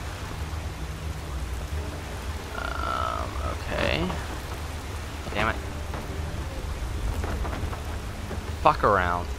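A magic flame hums and crackles softly.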